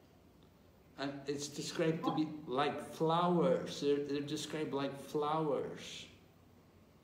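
An elderly man speaks with animation, close to a phone microphone.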